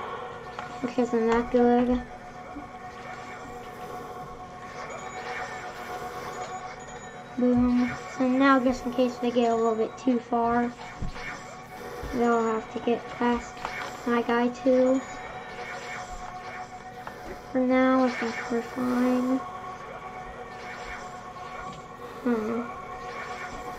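A young boy talks with animation, close to a microphone.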